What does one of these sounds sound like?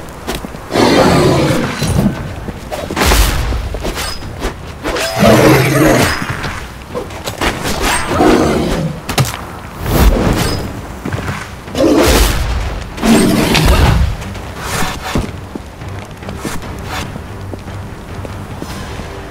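Blades slash and heavy blows thud in a fight.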